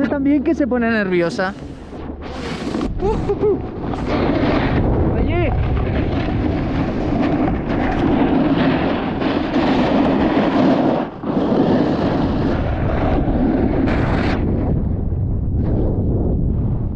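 Wind rushes loudly past, close up.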